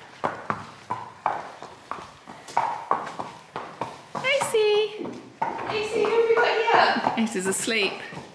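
Hooves clop on a hard floor as a horse walks.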